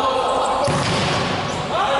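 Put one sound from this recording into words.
A ball is kicked hard.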